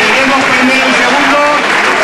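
A crowd claps and cheers in a large echoing hall.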